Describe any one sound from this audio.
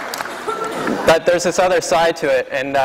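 A man speaks into a microphone to an audience in a large hall.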